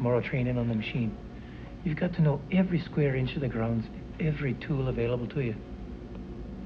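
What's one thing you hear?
A man speaks quietly and closely.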